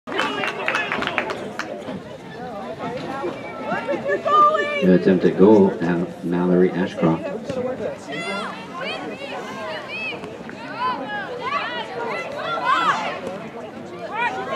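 Young female players shout and call out to each other across an open field.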